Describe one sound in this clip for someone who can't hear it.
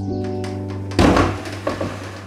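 A heavy case thumps down onto a wooden table.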